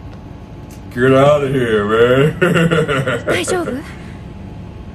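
A young man laughs loudly, close to a microphone.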